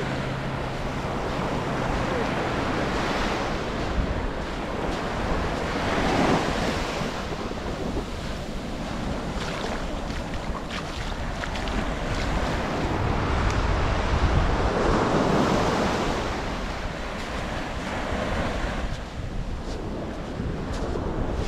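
Small waves wash and break gently onto the sand, rising and falling in swells.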